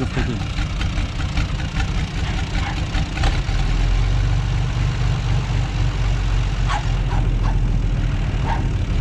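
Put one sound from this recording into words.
A tractor engine idles nearby with a low, steady rumble.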